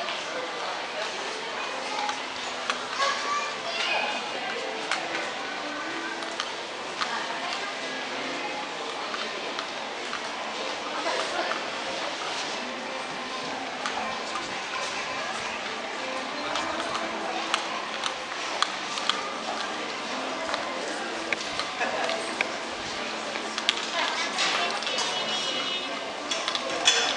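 Many people chatter in a large, echoing hall.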